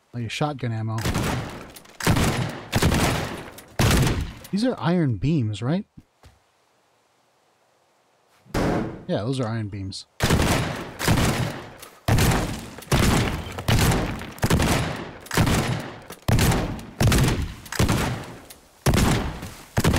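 A shotgun fires loud blasts again and again.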